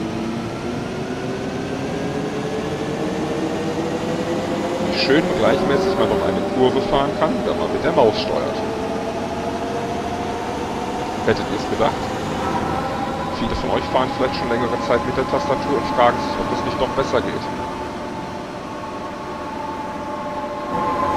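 A bus engine hums steadily and rises slowly in pitch as the bus speeds up.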